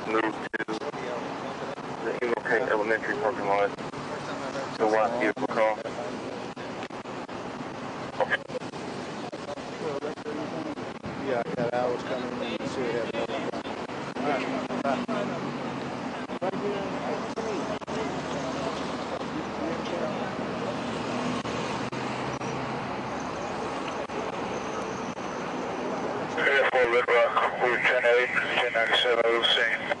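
Several people talk at a distance outdoors.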